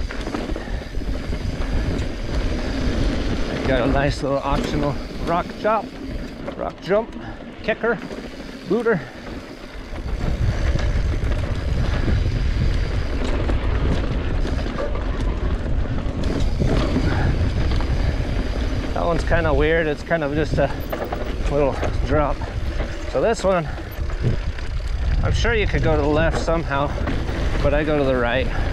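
A bicycle chain and frame rattle over bumps.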